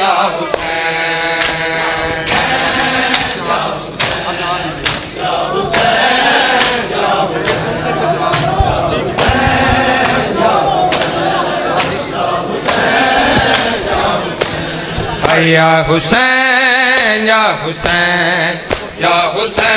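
Men chant together loudly in a crowd.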